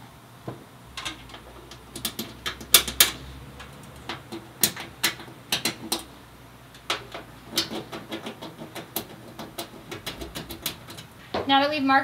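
Plastic trim snaps and clicks into place under a hand.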